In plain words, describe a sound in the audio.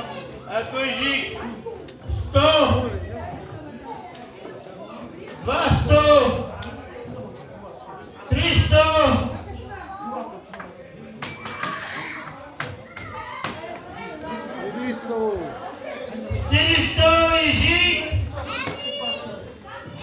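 A man speaks loudly with animation into a microphone, heard through loudspeakers in a large room.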